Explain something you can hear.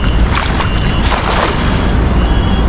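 A fishing net is thrown and splashes onto the water.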